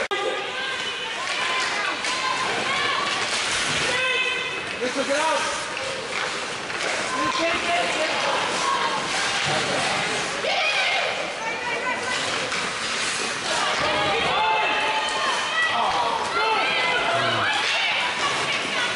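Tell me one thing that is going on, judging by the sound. A crowd of spectators shouts and cheers in an echoing rink.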